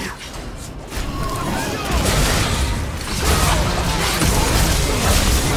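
Fighting sound effects clash and burst loudly in a video game.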